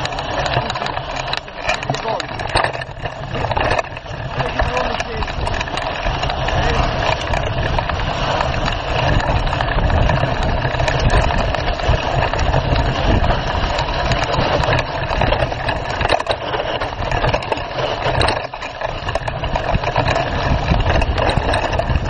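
A motorbike engine revs loudly, rising and falling.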